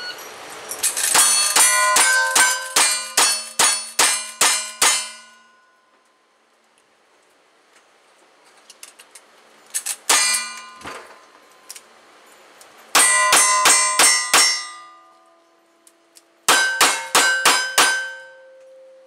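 A man fires a gun in rapid bursts of sharp, loud shots outdoors.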